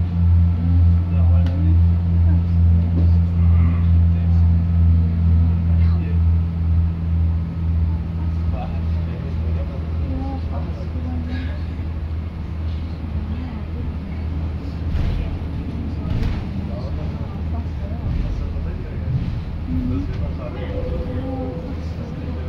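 A man talks on a phone nearby.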